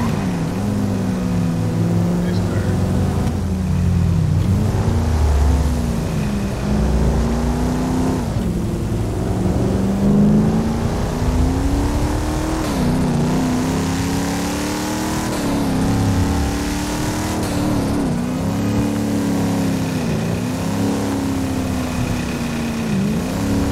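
A car engine revs hard, rising and dropping in pitch as it shifts gears.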